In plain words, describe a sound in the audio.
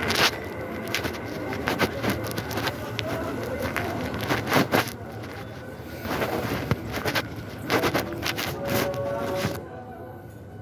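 Footsteps tap on a hard platform.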